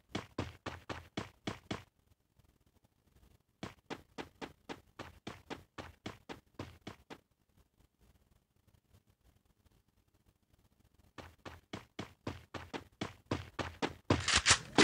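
Footsteps thud quickly on grass.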